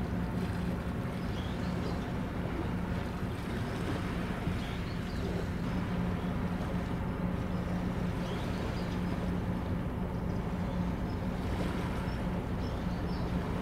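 A ship's engine hums low and steady across the water.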